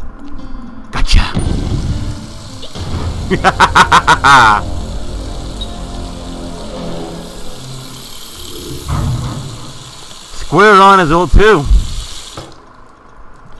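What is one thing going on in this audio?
Water sprays and hisses from a broken fire hydrant.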